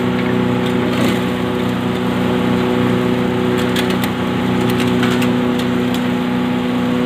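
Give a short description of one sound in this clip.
Metal clicks and clatters now and then.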